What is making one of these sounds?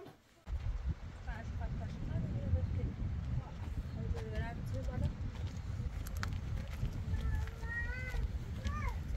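A young woman talks outdoors over the wind.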